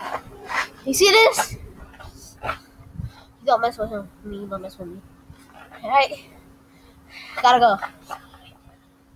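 A young boy talks close by with animation.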